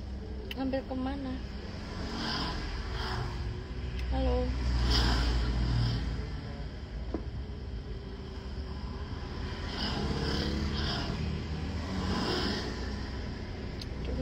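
A young woman speaks softly and casually into a phone microphone, close by.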